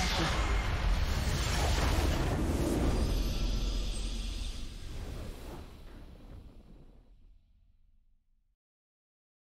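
A triumphant game fanfare swells and slowly fades away.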